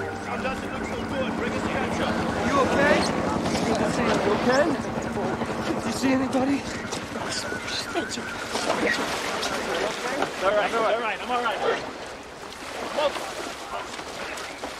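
Water splashes as people wade through a river.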